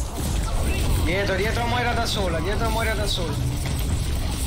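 A young man speaks with animation through a microphone.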